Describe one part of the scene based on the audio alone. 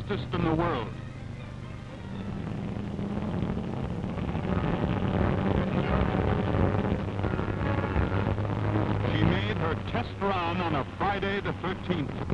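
A speedboat engine roars as the boat races across open water.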